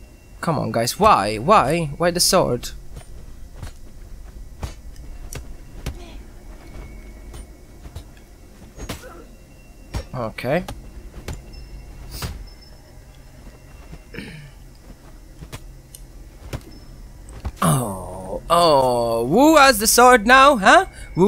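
Swords clash and blows land in a fight, in short sharp hits.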